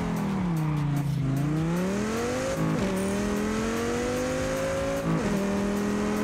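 A car engine revs up through the gears, dropping in pitch at each gear change.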